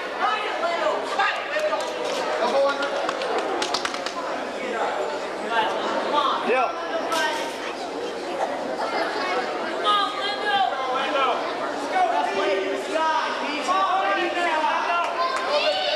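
Bodies thump and shoes squeak on a wrestling mat.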